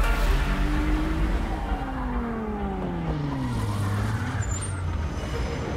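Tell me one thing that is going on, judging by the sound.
A car engine slows and drops in pitch as a car pulls up.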